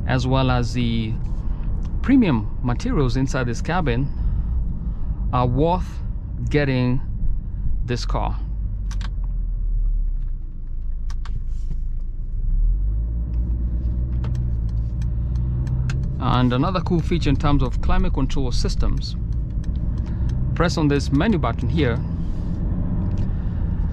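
A car engine hums steadily with low road rumble inside the cabin.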